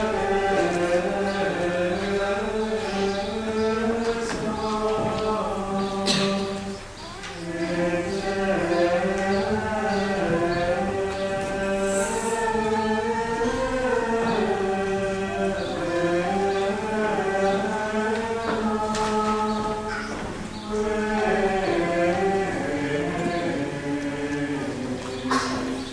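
A choir of voices sings a slow chant in a large echoing hall.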